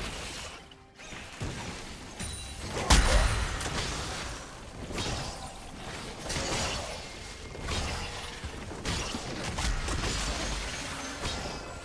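Spell effects crackle and burst in a game fight.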